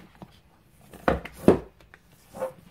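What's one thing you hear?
A book slides onto a shelf and knocks against it.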